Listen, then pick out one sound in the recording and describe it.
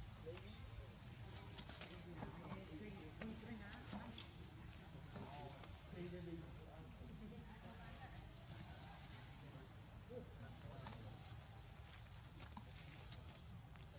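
Monkeys scuffle and rustle through grass.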